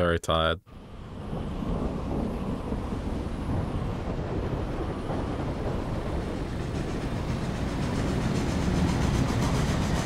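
An airship engine hums steadily.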